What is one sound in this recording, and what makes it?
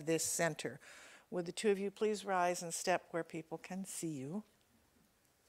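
An older woman speaks calmly into a microphone in an echoing hall.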